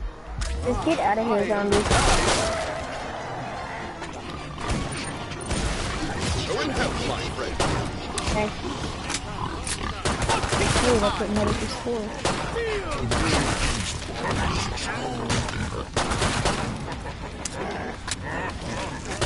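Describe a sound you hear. Monsters snarl and groan nearby.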